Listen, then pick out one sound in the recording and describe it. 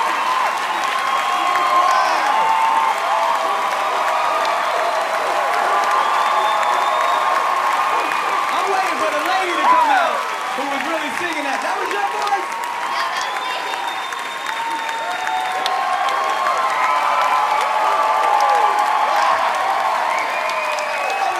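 A large crowd claps and applauds.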